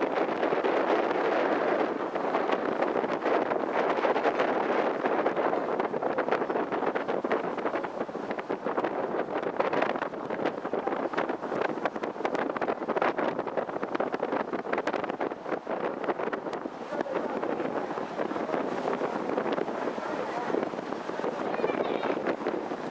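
Water splashes and rushes steadily against a moving boat's hull.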